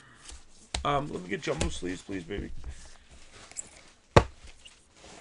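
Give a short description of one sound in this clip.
A cardboard box knocks against a tabletop.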